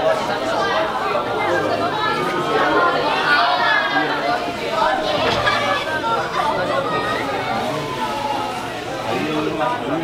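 Many voices chatter in the background.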